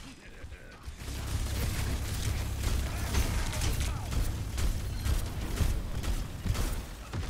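A heavy gun fires in rapid, booming blasts.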